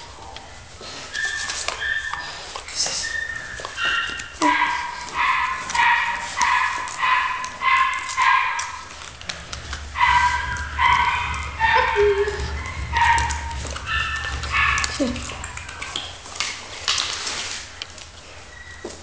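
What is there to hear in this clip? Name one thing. A puppy yelps and howls over and over in high, short cries close by.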